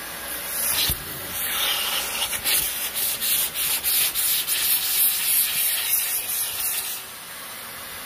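A vacuum nozzle scrapes and rustles over fabric.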